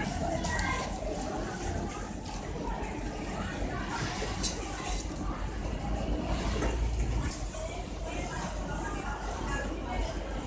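Sewing machines hum and whir steadily in a large room.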